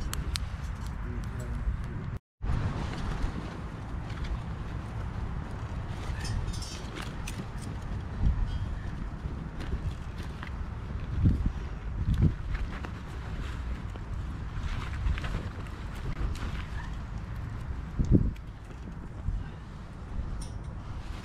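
A small wood fire crackles and pops.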